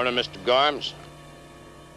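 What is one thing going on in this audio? A young woman speaks briefly in a high, lively voice.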